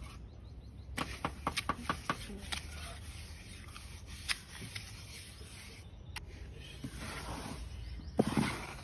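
A trowel scrapes across wet cement.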